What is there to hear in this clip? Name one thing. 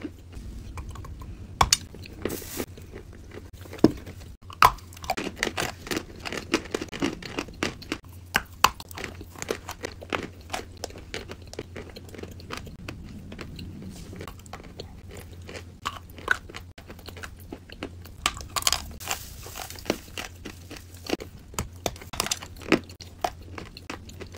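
Crunchy food cracks and crunches sharply as it is bitten, close by.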